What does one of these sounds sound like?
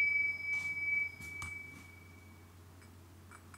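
A small bell rings with a clear tone and slowly fades.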